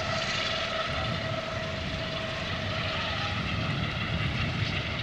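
A helicopter's engine whines steadily.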